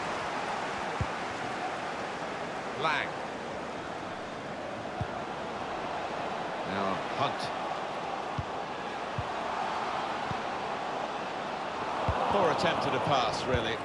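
A football is kicked with short dull thumps.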